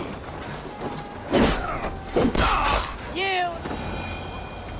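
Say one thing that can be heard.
A man grunts and cries out while fighting.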